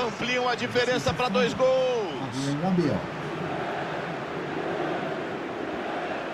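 A stadium crowd murmurs and cheers steadily.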